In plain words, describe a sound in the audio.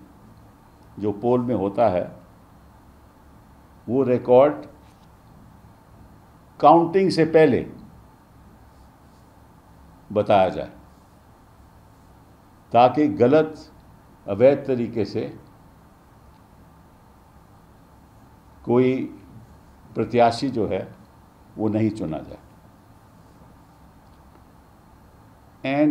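An elderly man speaks calmly and slowly into a nearby microphone, with long pauses.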